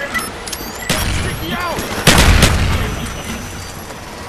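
Gunfire cracks in short bursts.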